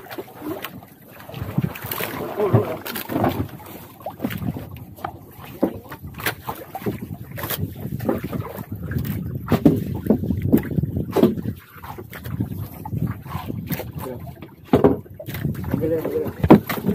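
Waves slap against the side of a small boat.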